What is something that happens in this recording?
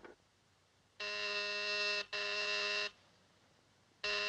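A telephone rings in loud repeated bursts.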